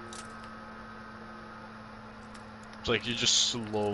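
A metal pick scrapes and clicks inside a lock.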